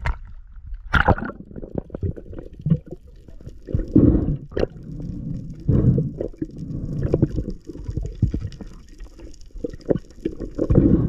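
Water rumbles and bubbles, muffled as if heard underwater.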